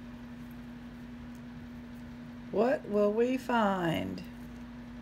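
A metal chain clinks softly.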